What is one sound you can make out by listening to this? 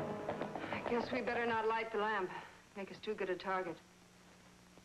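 A woman speaks urgently, close by.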